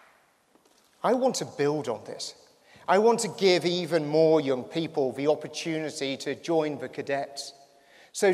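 A man speaks with emphasis into a microphone over loudspeakers.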